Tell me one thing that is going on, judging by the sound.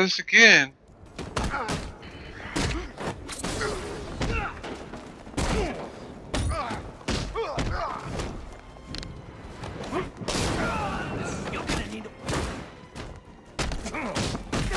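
Fists and kicks land with heavy thuds in a fast brawl.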